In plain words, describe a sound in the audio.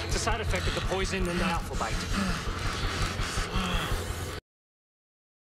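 A man groans and gasps in pain close by.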